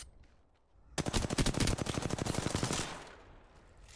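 A rapid-fire gun shoots a fast burst of shots.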